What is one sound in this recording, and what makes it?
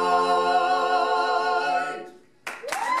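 Four men sing a sustained chord together in close harmony.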